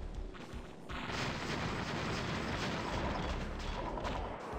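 A building explodes with a loud roaring blast.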